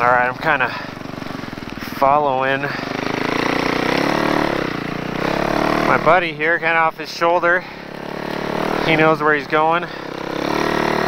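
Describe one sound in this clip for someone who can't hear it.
A snowmobile engine revs sharply in short bursts.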